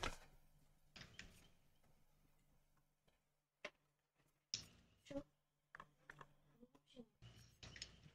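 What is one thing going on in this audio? Short interface clicks sound as menu options are selected.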